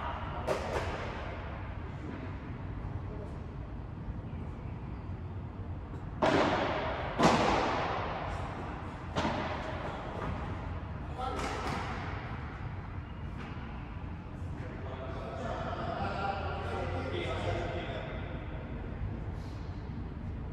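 A ball bounces off the court and glass walls.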